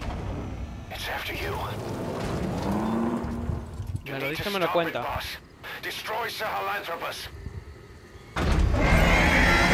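A giant machine rumbles and clanks heavily.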